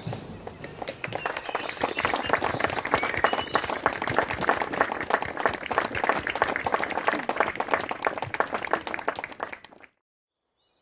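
A crowd applauds outdoors.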